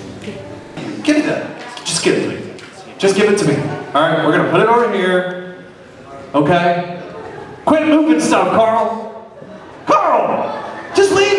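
A man speaks with animation into a microphone, heard over loudspeakers in a large hall.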